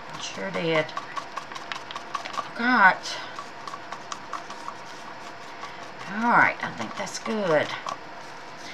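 A stick scrapes and taps against the inside of a plastic cup.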